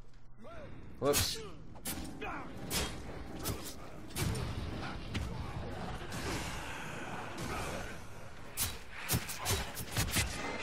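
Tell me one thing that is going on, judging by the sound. Swords clash and strike in a fierce fight.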